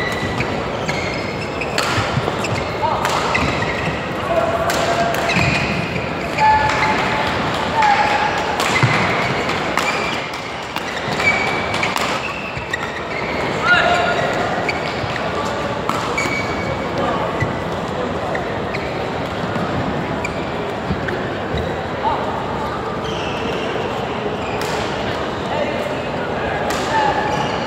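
Shoes squeak on a hard court floor.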